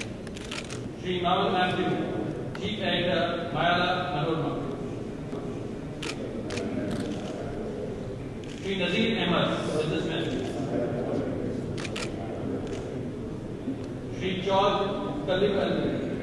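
Men talk quietly with each other in a large echoing hall.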